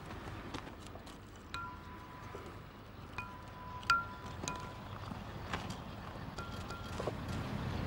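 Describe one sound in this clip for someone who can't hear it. Bricks clink and scrape as they are set in place.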